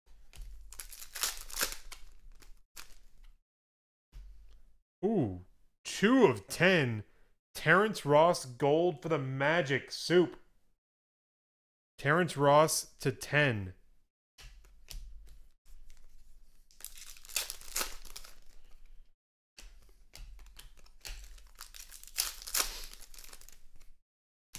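Foil wrappers crinkle and tear.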